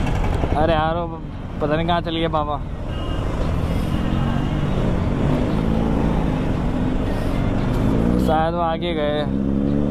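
A motorcycle engine hums and revs up and down while riding.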